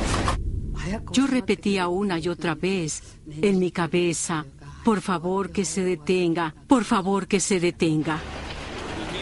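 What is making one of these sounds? An elderly woman speaks emotionally close to a microphone.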